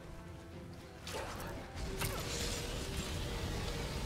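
A wolf snarls and growls.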